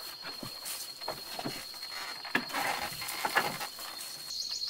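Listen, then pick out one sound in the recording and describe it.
A wooden ladder creaks as someone climbs it.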